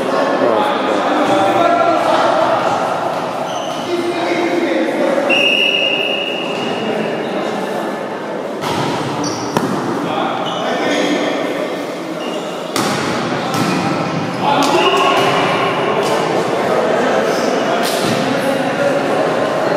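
A crowd of young people shouts and cheers in a large echoing hall.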